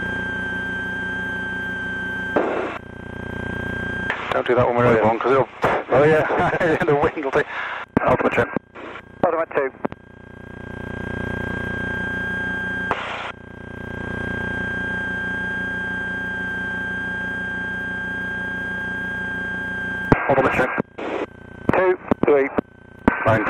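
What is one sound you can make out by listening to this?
A propeller engine drones steadily, heard inside a cockpit.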